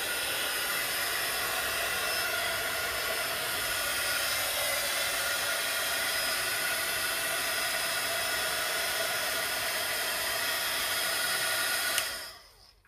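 A heat gun blows with a steady whooshing roar.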